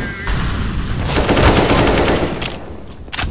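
Rifle shots fire in a rapid burst.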